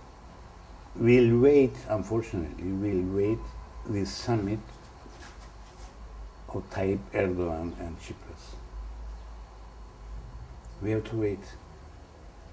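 An elderly man speaks calmly and slowly, close by, with pauses.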